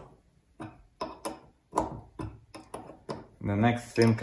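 A wrench clinks against metal as a bolt is tightened.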